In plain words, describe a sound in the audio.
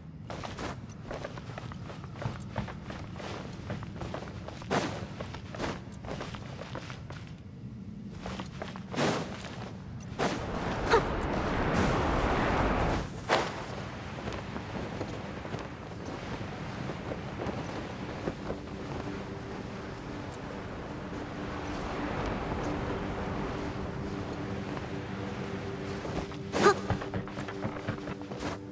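Quick footsteps patter across rock and wooden boards.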